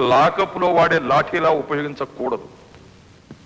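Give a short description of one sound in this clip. A man speaks loudly over a loudspeaker.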